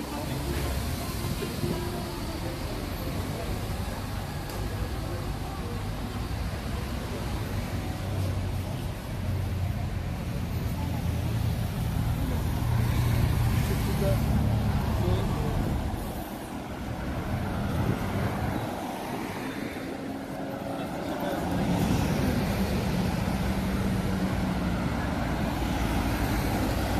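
Traffic rumbles steadily on a city street outdoors.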